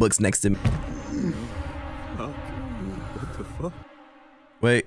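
A young man exclaims in dismay, close to a microphone.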